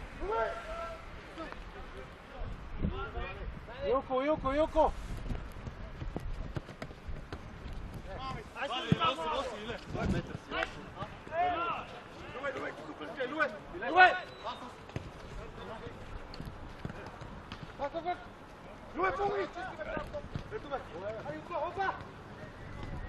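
Men shout to each other across an open outdoor pitch.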